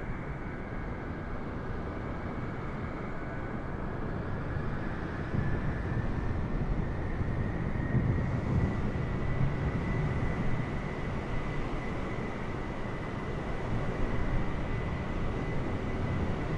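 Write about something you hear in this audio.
Jet engines whine and roar steadily as an airliner taxis close by.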